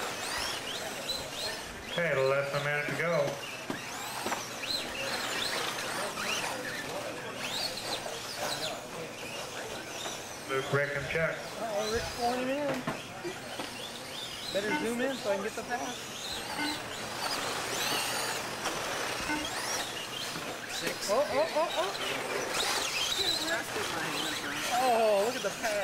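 Small electric motors of toy cars whine and rise and fall in pitch as the cars race.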